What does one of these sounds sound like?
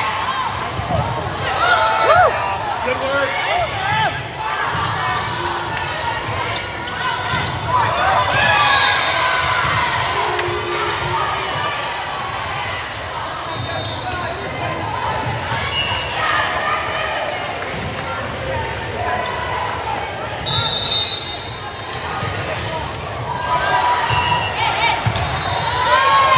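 A volleyball is struck with sharp smacks.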